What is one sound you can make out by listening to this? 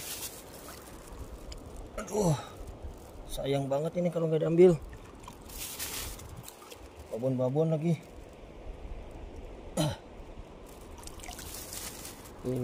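Shallow water ripples and laps gently.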